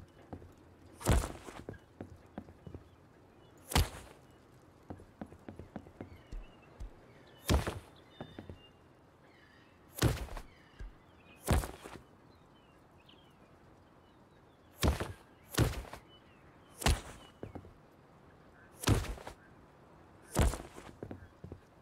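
A hammer bangs sharply on wood at intervals.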